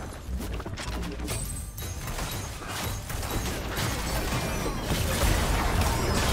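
Spell effects whoosh and blast in a fast game battle.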